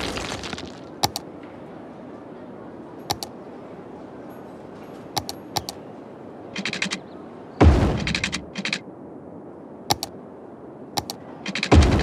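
Soft clicks sound as a menu is used.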